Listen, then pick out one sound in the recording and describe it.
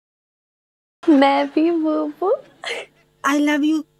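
A young woman speaks tearfully close by.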